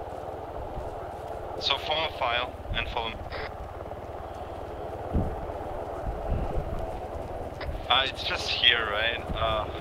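Footsteps crunch on dry ground and grass.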